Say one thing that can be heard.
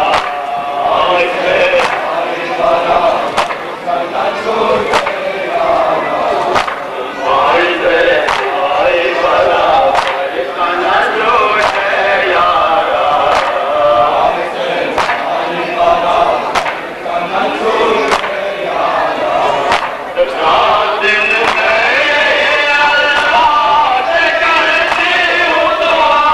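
A crowd of men chants loudly together outdoors.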